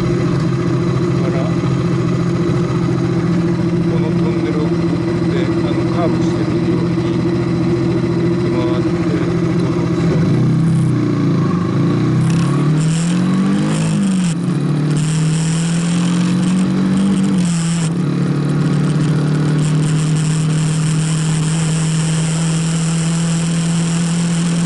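A motorcycle engine hums steadily at low speed, then revs up and down as the rider accelerates.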